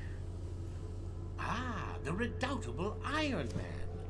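An elderly man speaks slowly and menacingly.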